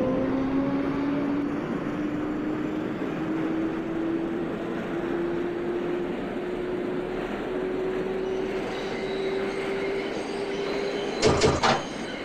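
A train's electric motors whine, rising steadily in pitch as the train speeds up.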